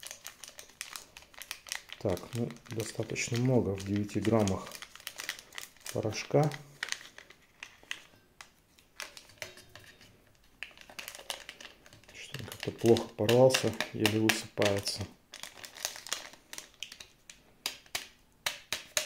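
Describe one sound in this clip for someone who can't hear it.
A plastic sachet crinkles and rustles in hands.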